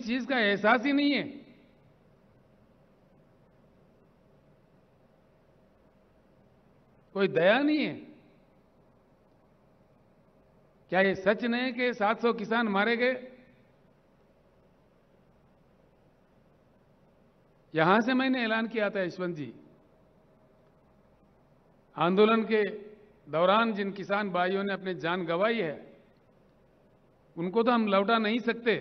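An elderly man speaks slowly and forcefully through a microphone, with long pauses, in a large echoing space.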